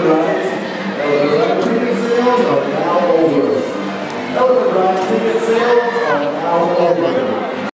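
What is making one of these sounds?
A crowd of people chatters loudly all around in a large echoing hall.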